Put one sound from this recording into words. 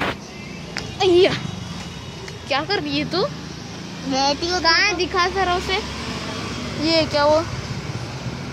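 A young child talks close by.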